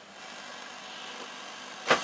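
A knob clicks.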